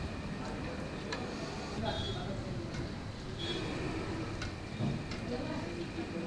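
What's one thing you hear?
Hot oil sizzles and bubbles in a pan.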